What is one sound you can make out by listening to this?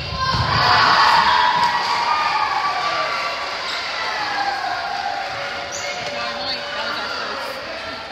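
Sneakers squeak on a hard court.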